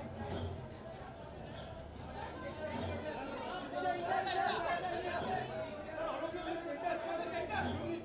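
Men and women talk and call out together in a busy crowd nearby.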